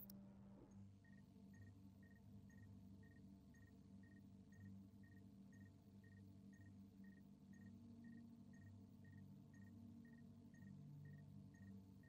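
A short electronic beep repeats steadily and evenly.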